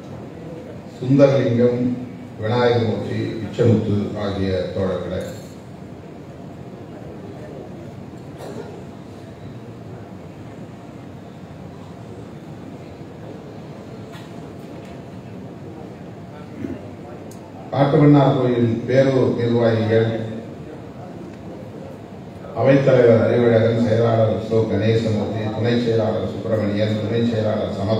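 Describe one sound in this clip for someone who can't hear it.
A middle-aged man reads out through a microphone and loudspeakers in a large echoing hall.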